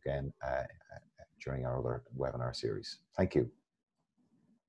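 A middle-aged man speaks calmly into a microphone over an online call.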